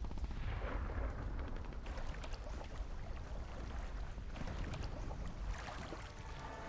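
Fast water rushes and churns loudly.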